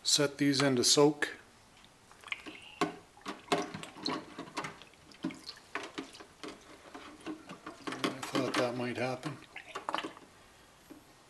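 Small metal parts clink and rattle against a metal tank.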